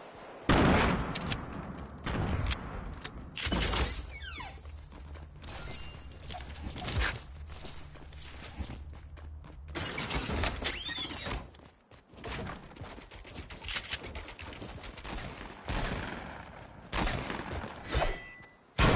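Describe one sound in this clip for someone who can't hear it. Footsteps from a game figure run across hard floors.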